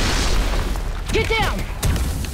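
A young woman shouts through a radio transmission.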